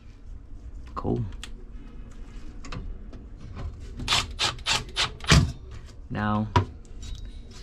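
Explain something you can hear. A cordless drill whirs in short bursts.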